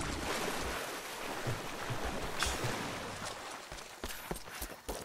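Water splashes as someone wades through a river.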